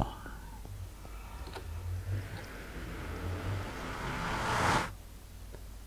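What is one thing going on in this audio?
A portal hums with a rising, swelling whoosh.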